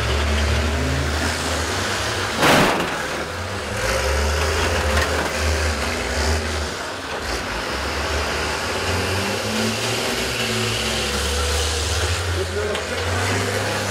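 Bus engines rumble and rev loudly outdoors.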